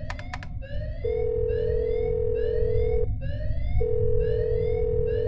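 A phone rings with a repeating electronic tone.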